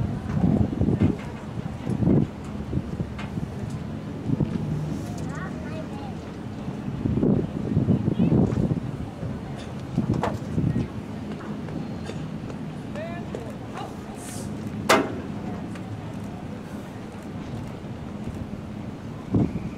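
A crowd of people chatters in outdoor stands nearby.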